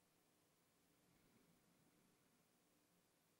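A man breathes softly and slowly close to a microphone.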